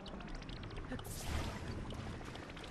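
A sharp magical whoosh sounds as an object is pulled in.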